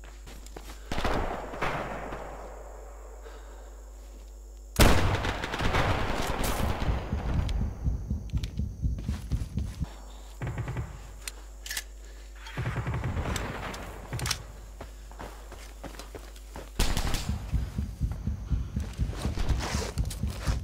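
A shotgun fires with a loud blast that echoes away.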